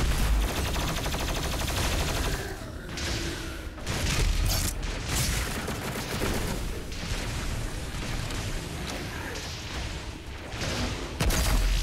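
An electric beam crackles and buzzes.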